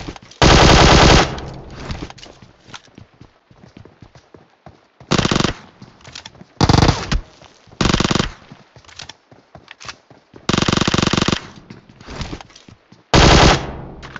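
Rapid gunfire bursts out in short loud volleys.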